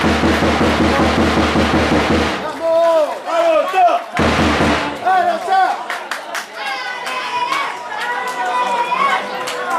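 Young men shout and cheer outdoors in celebration.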